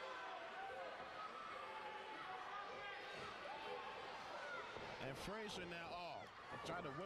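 Bodies slam and thud onto a ring floor.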